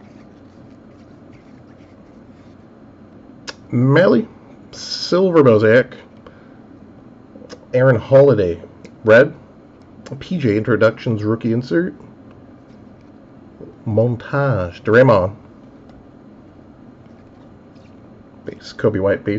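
Trading cards slide and rustle against each other in a hand.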